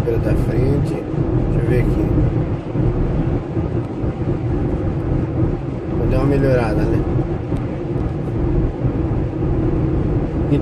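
A car engine hums with road noise as the car drives along.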